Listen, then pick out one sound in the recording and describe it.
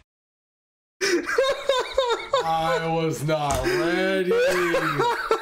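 A bearded young man laughs loudly close to a microphone.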